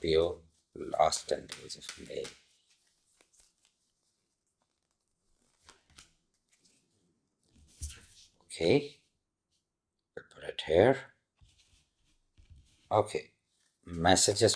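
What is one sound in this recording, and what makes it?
A middle-aged man speaks calmly and close by, in short phrases with pauses.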